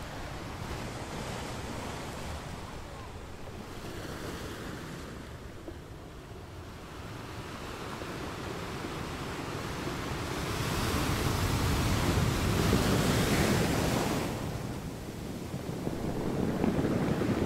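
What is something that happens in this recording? Surf washes and swirls over the rocks in a steady rush.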